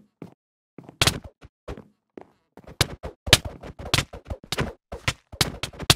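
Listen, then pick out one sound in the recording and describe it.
A sword strikes again and again with quick, sharp hits.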